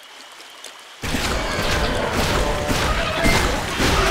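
Blows and clashing sounds of a fight ring out.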